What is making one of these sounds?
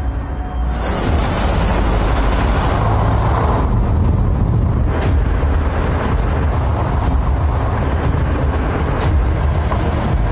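A car engine hums as a car drives along a road.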